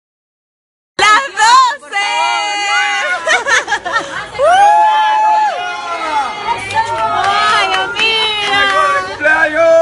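A group of young women and men sing loudly and cheerfully close by.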